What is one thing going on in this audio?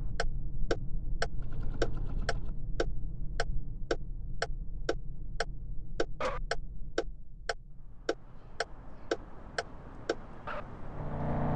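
A turn signal ticks evenly and fast.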